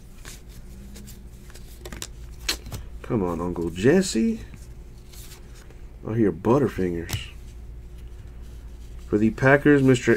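Cardboard trading cards rustle and slide against each other.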